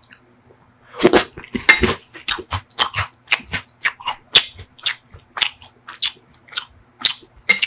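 Crisp wafer cones crackle as ice cream is pressed into them.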